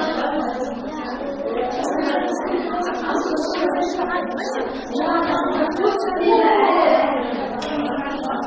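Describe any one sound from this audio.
Many children chatter over one another in a room with some echo.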